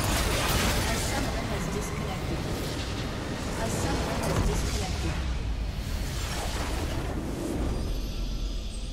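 Game spell effects crackle and boom in a busy battle.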